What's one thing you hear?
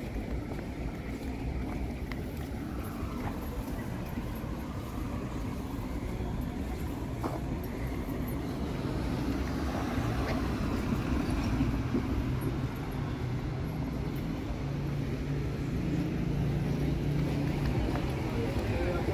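City traffic hums steadily outdoors.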